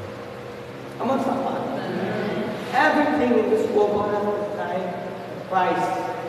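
A man speaks with animation through a microphone and loudspeakers in a large echoing hall.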